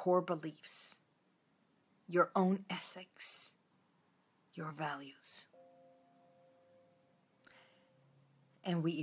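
A middle-aged woman speaks calmly and close to the microphone, in short phrases with pauses.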